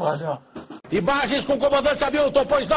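A man speaks loudly and forcefully into a microphone.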